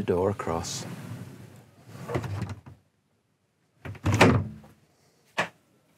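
A sliding door rolls shut with a thud.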